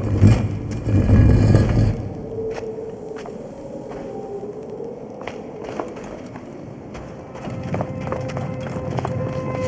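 Footsteps crunch on sand and stone.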